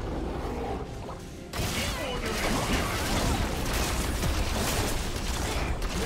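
Video game combat sound effects clash and burst.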